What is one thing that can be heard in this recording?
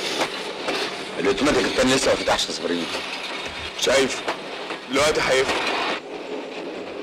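A man speaks loudly and with agitation.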